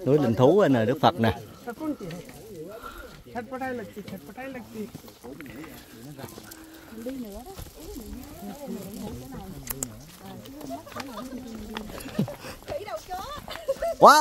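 Adult men and women chat nearby.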